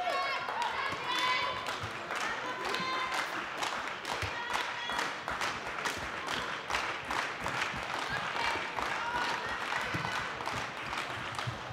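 Young women call out to each other across an echoing hall.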